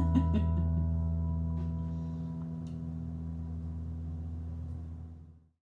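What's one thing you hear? An acoustic guitar chord rings out and slowly fades away.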